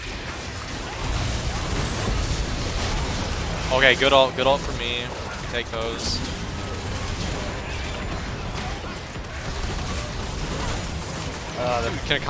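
Magic blasts crackle and whoosh in a fast fantasy battle.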